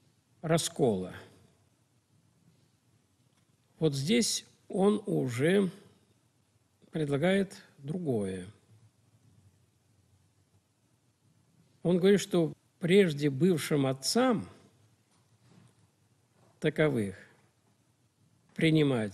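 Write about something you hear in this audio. An elderly man speaks calmly into a nearby microphone, pausing between phrases.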